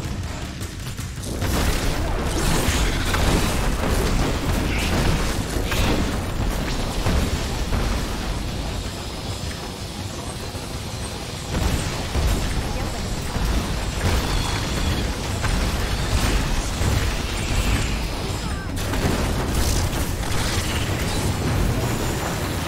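Magic spells crackle and blast in a game fight.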